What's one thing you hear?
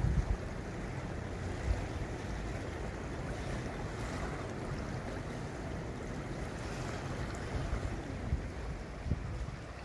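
A swollen river rushes and churns steadily.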